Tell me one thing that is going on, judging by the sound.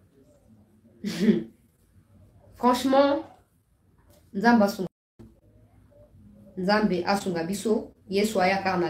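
A young woman speaks calmly and close, in short bursts with pauses.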